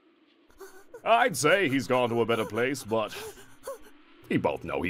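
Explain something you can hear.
A young man speaks with tense emotion.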